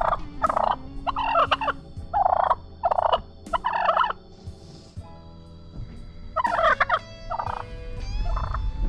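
A turkey gobbles loudly and close by.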